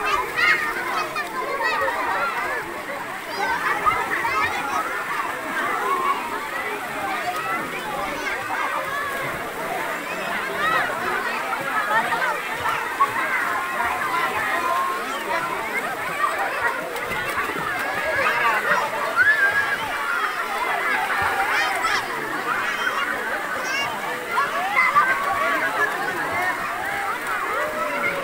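Water splashes as people move around in it.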